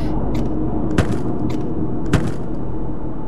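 A locked door handle rattles.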